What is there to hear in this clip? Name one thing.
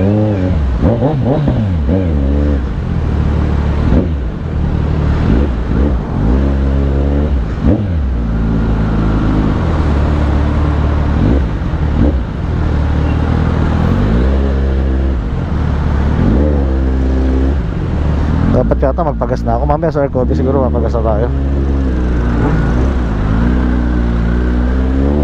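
A motorcycle engine idles and revs up and down close by.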